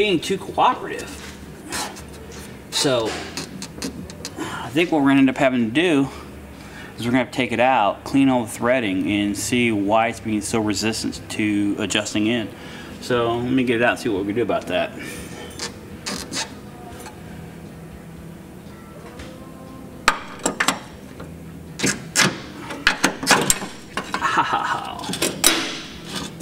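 Metal tools click and clank against car parts.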